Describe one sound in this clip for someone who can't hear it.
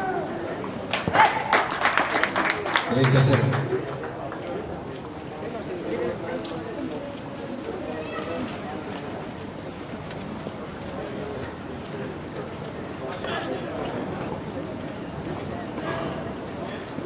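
Tennis rackets strike a ball in a rally outdoors.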